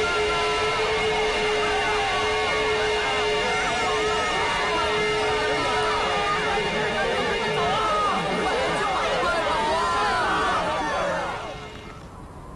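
A large crowd of men shouts and roars.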